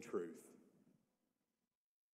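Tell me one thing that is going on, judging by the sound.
A man speaks calmly into a microphone in a reverberant hall.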